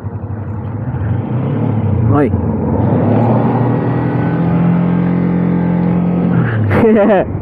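A motorcycle engine revs higher as the bike pulls away.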